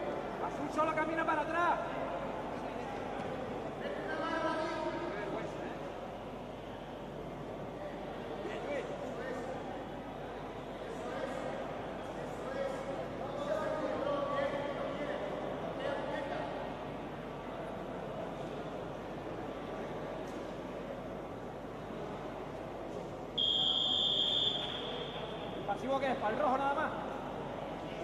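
Men shout and call out from the side of the mat in an echoing hall.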